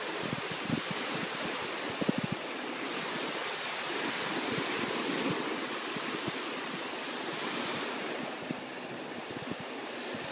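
Small waves wash and break gently onto a beach.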